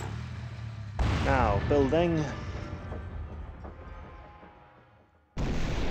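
A mortar fires with a loud boom.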